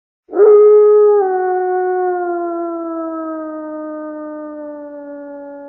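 A wolf howls in a long, slowly falling cry.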